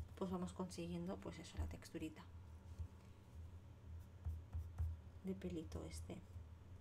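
A woman talks calmly and closely into a microphone.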